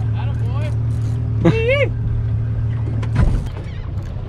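A small electric boat motor hums steadily, then stops.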